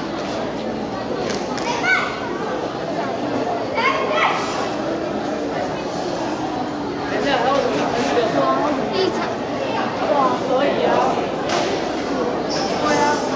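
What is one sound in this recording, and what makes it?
A boy's cotton uniform snaps with quick punches and kicks.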